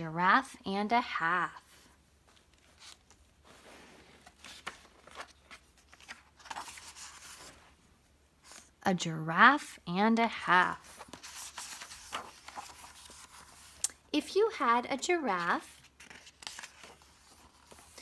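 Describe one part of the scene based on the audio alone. Paper pages rustle and flip as a book is leafed through.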